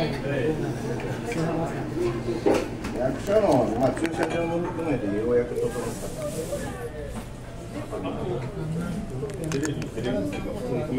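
A woman talks casually, close by.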